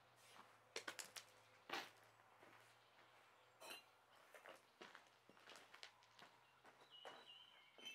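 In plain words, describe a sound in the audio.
A metal bar clanks as it is set down.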